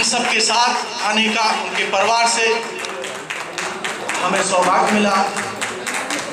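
A man speaks loudly and passionately into a microphone, amplified through loudspeakers.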